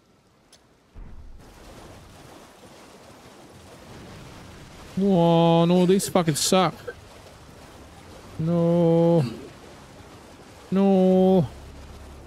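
A horse splashes through shallow water.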